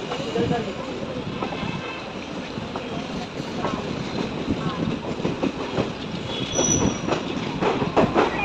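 A train rumbles and clatters steadily along the tracks.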